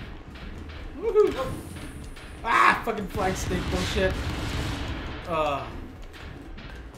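Young men shout and laugh excitedly in a room, heard through a microphone.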